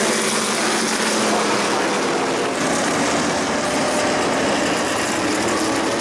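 Race car engines roar loudly as the cars speed around the track.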